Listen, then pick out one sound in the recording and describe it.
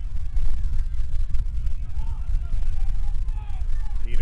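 A crowd of spectators murmurs in the distance outdoors.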